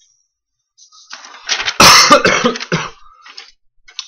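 Paper rustles loudly close by.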